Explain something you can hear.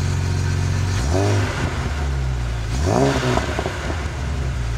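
A car engine revs briefly twice, rising and falling.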